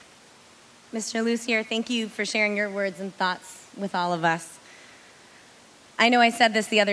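A woman speaks calmly through a microphone and loudspeakers.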